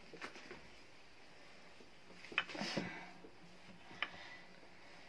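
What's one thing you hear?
A wooden rolling pin rolls and thumps on dough against a hard counter.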